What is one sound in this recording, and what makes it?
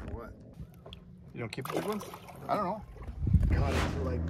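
Water splashes as a fish is released.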